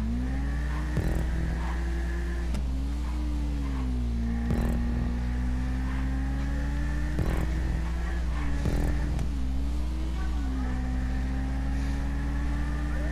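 A motorcycle engine hums steadily, its pitch rising and falling as it speeds up and shifts gears.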